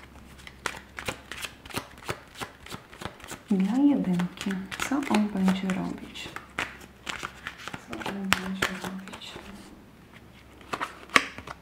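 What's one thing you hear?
Playing cards shuffle and flick in a hand.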